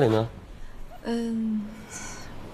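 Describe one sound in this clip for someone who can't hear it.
A young woman speaks briefly and calmly.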